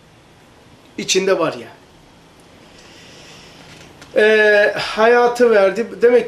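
An elderly man speaks calmly into a close microphone, pausing between phrases.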